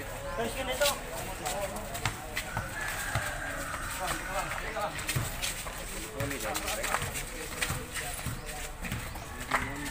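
Young men shout and call out to each other outdoors during a ball game.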